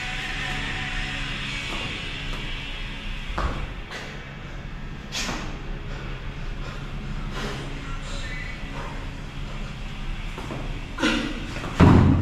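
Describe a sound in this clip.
Dumbbells clank as a man lifts them.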